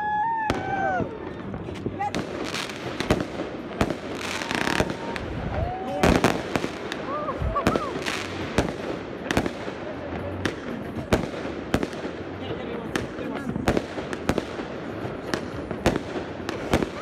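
Fireworks crackle and fizz overhead.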